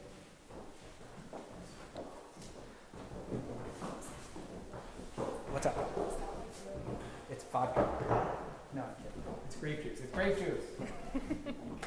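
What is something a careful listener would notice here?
Footsteps thud on wooden steps.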